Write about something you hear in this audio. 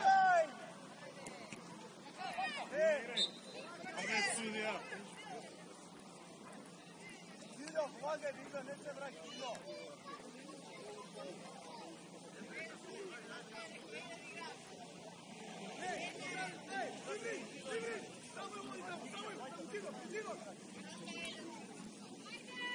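Young men shout and call to each other across an open field, some way off.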